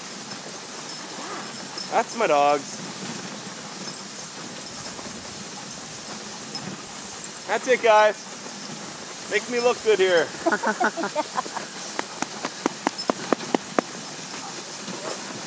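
A sled's runners hiss steadily over snow.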